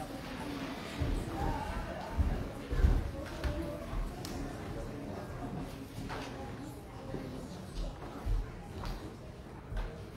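Children's footsteps thump on a wooden floor.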